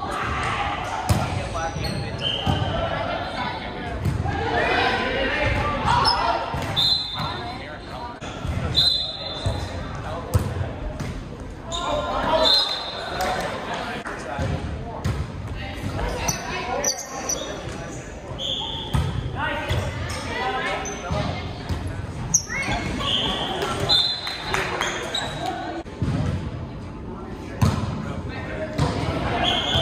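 A volleyball is hit with sharp slaps in a large, echoing hall.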